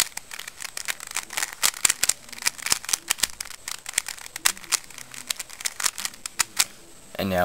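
Plastic puzzle cube layers click and clatter rapidly as they are twisted.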